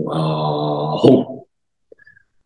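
A middle-aged man chants a long, drawn-out sound close to a microphone.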